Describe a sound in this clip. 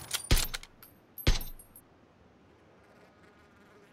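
A scoped rifle fires a single shot.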